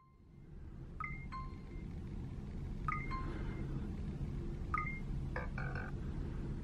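A phone gives short beeps as it scans barcodes.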